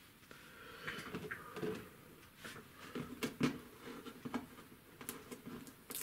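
Hands shift and tap a painting board on a wooden table.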